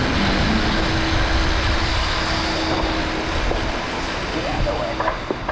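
Bicycle tyres rumble and rattle over cobblestones.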